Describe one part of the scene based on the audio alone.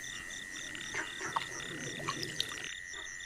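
Water splashes softly in a basin as a hand stirs it.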